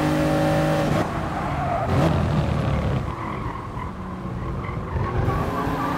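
A racing car engine drops in pitch as the car brakes for a corner.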